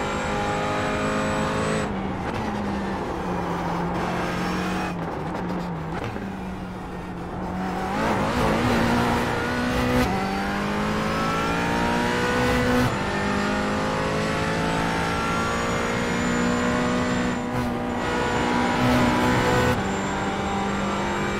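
A racing car engine roars, revving up and dropping with each gear change.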